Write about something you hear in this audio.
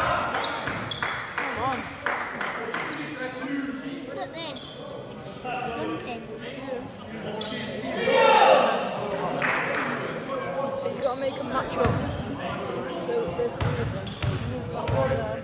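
Sneakers squeak on a hard court floor in a large echoing hall.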